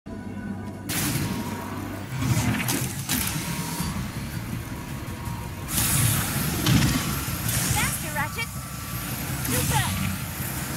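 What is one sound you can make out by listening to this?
A loud rumbling whoosh surges and builds with speed.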